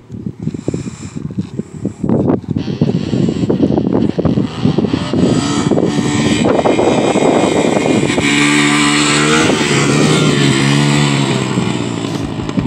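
A dirt bike engine revs loudly and roars.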